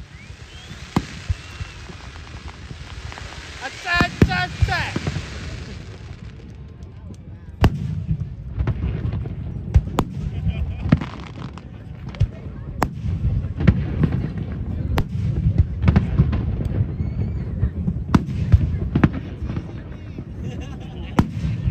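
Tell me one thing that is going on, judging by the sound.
Fireworks burst with loud booms and crackles outdoors.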